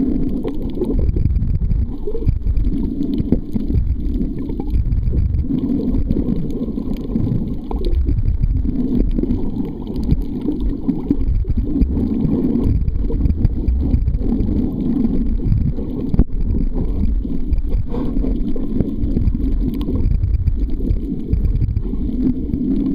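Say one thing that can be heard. Water rushes and rumbles in a muffled, low, steady way underwater.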